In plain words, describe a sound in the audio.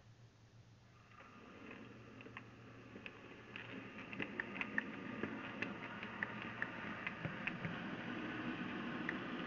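A small model train rumbles closer and grows louder.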